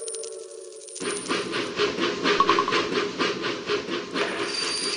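A toy-like train chugs along a track.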